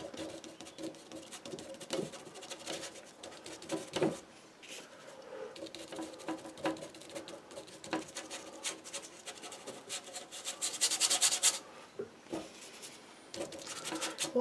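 A stiff brush dabs and scrapes against a canvas.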